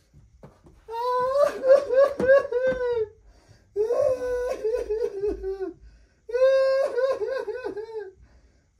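A puppy whines and howls in high, wavering cries.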